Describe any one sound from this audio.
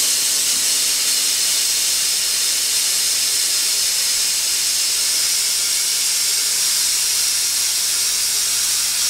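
An engine idles with a steady low hum.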